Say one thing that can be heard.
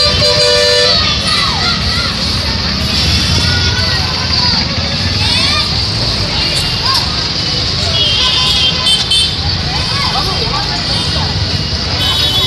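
A bus engine drones nearby.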